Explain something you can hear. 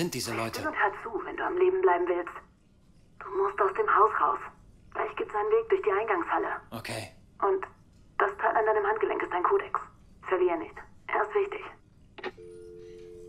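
A voice speaks calmly through a telephone receiver.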